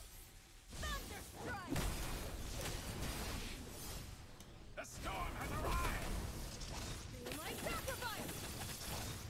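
Battle sound effects clash and boom.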